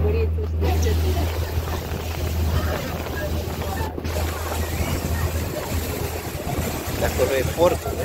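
Wind blows across the open water.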